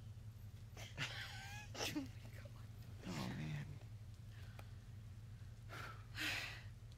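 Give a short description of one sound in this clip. A young woman laughs softly nearby.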